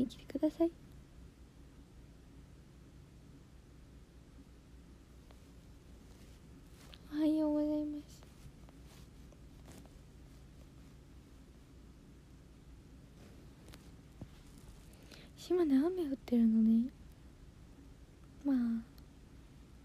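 A young woman speaks briefly in short bursts, close to a phone microphone.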